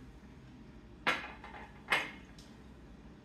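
Dishes clatter as they are set down on a table.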